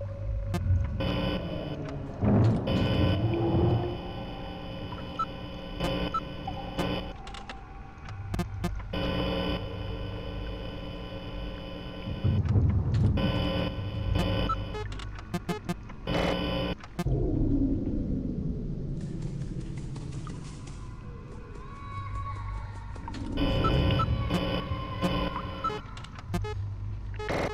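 An electronic static buzz hums and crackles.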